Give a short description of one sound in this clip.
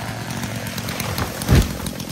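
A tree crashes down through branches and thuds onto the ground.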